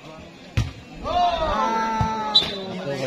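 Young men shout and cheer close by outdoors.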